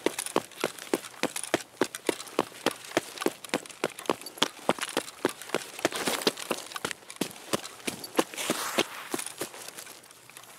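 Quick footsteps crunch on gravel and grass.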